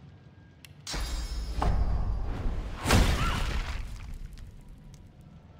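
A heavy magical blast roars and rumbles.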